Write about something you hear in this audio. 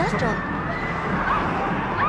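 A young woman screams.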